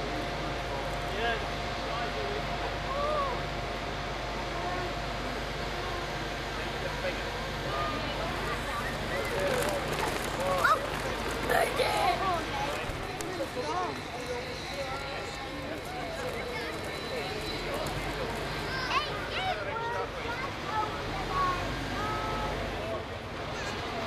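Men talk to each other outdoors at a distance.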